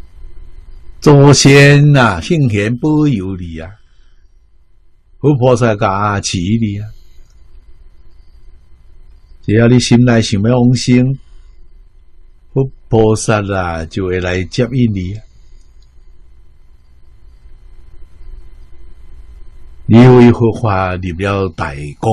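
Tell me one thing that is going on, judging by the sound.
An elderly man speaks calmly and warmly into a microphone, in short phrases with pauses.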